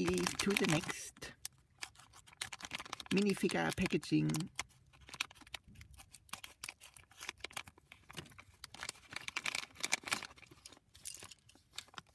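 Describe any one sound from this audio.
A plastic packet crinkles and rustles in hands.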